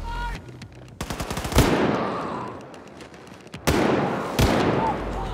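Guns fire loud shots that echo.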